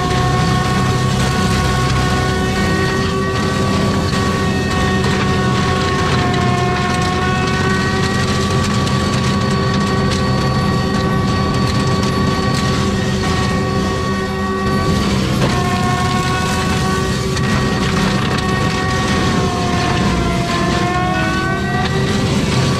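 A mulcher shreds and grinds brush.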